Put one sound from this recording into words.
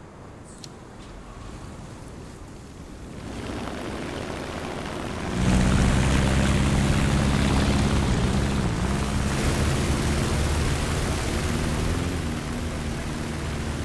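A propeller aircraft engine starts up and builds to a loud, steady roar.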